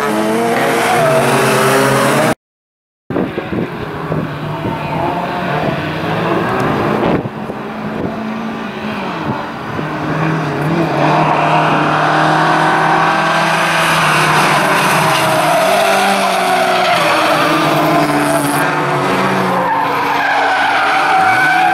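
Car engines roar and rev loudly as rally cars race by.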